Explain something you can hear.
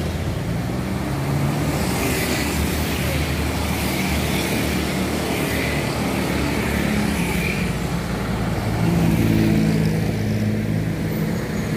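A car engine idles and rolls by nearby.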